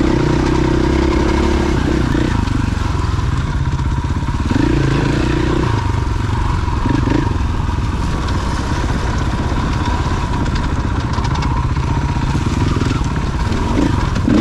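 A dirt bike engine revs and roars up close as it rides.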